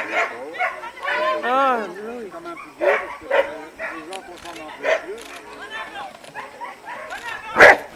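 A man calls out to a dog outdoors with lively, sing-song commands.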